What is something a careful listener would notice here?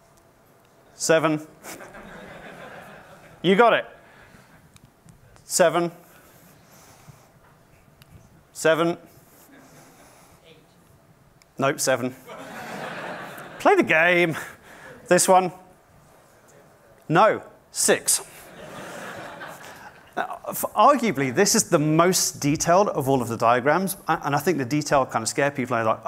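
A man speaks into a microphone in a large hall, pausing often.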